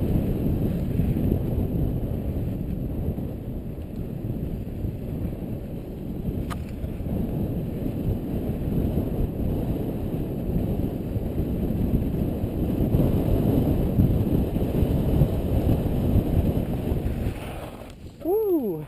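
Wind rushes and buffets against a helmet microphone as a mountain bike speeds downhill.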